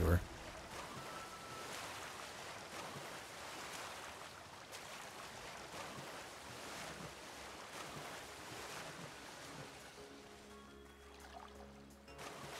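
Water splashes and rushes steadily.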